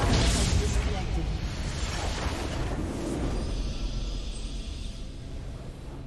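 Magic blasts and clashing spell effects burst loudly in a game battle.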